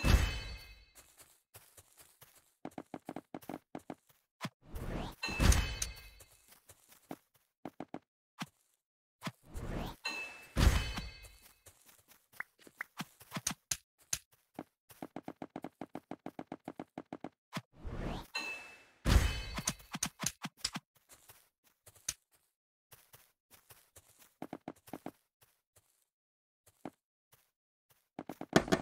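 Game blocks click softly as they are placed in quick, steady succession.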